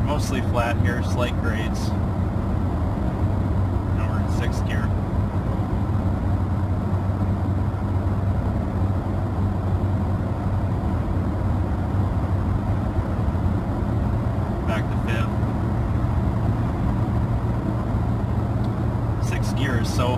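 Tyres roll steadily on a highway.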